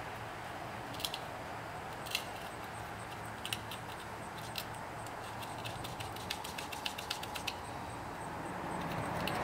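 A small metal tool clicks and scrapes against rubber tyre tread.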